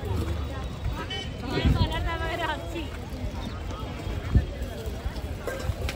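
A crowd murmurs softly in the distance outdoors.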